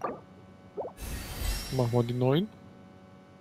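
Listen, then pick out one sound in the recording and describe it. A bright magical whoosh swells with a rising chime.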